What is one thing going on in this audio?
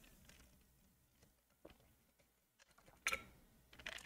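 A man sips a drink from a cup.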